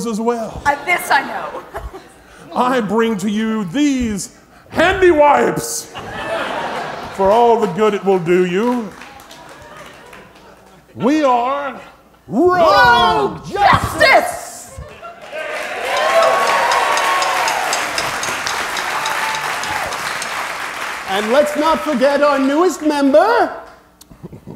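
A man speaks loudly and theatrically through a microphone in a large hall.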